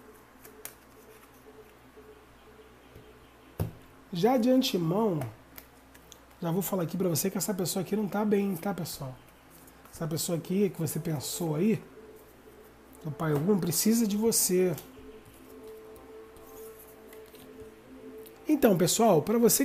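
Playing cards slide and tap softly onto a table.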